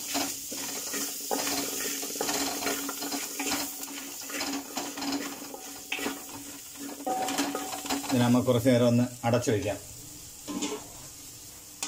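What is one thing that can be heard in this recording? Onions sizzle and crackle in hot oil.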